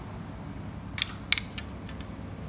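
Hands softly rattle and tap fishing rods.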